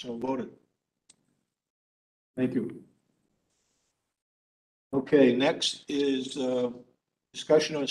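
A man speaks calmly into a microphone in a large room, in short bursts with pauses.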